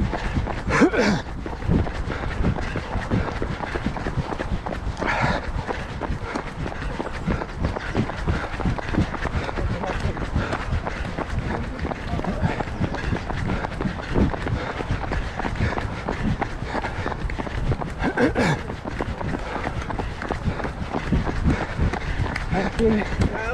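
Footsteps of a runner pound steadily on a paved path.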